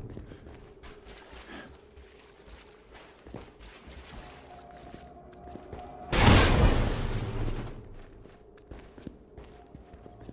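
Footsteps run over a stone floor.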